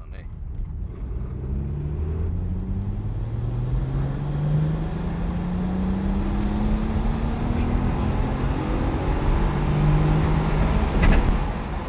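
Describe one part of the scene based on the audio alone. A car engine revs hard, rising in pitch through several gear changes.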